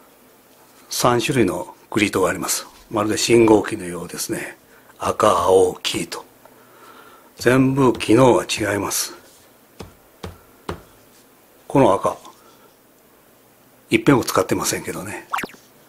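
A man speaks calmly close by, explaining in short phrases.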